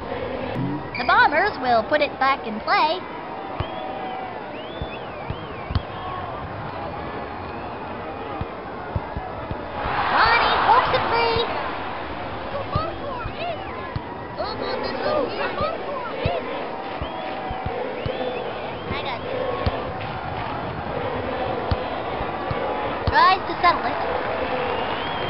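A soccer ball is kicked with soft thumps.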